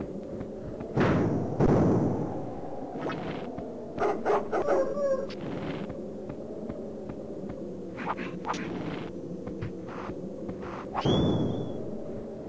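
A low whoosh sounds as a game figure bursts.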